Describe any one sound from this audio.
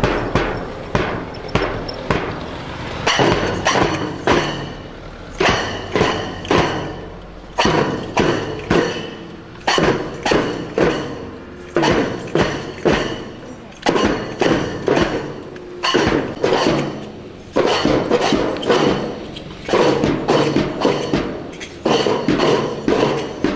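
Small drums rattle in a brisk march.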